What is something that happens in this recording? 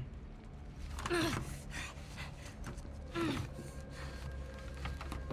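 Two men struggle and grunt in a scuffle.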